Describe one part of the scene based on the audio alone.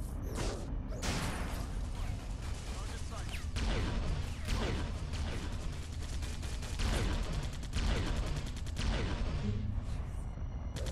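Energy blasts fire in rapid bursts.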